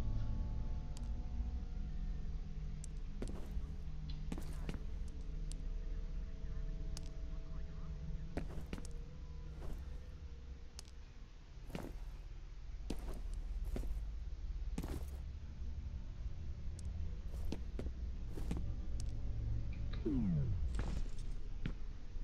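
Footsteps tread on a hard floor.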